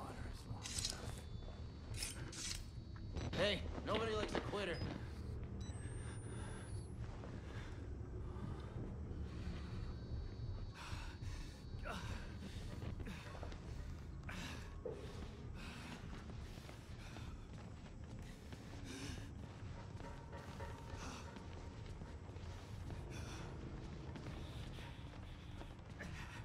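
Footsteps thud on a wooden floor in a hollow, echoing corridor.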